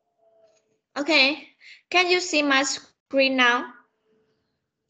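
A young woman speaks clearly through an online call.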